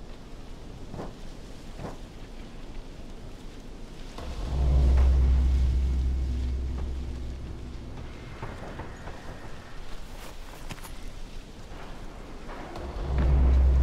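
A heavy blade thuds and slashes into flesh.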